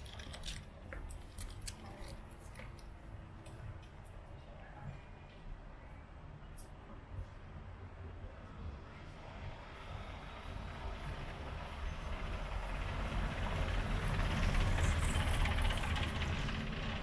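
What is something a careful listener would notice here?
Wind rustles leafy plants nearby, growing louder toward the end.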